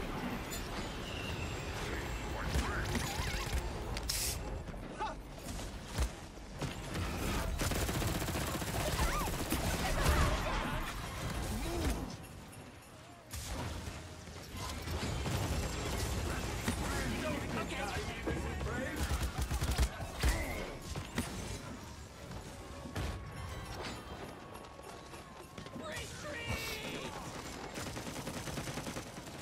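Gunfire and blasts from a video game crackle and boom.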